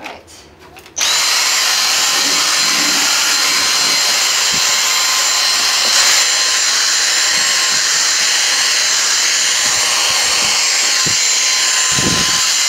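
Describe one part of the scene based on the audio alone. A cordless vacuum cleaner whirs loudly and steadily with a high whine.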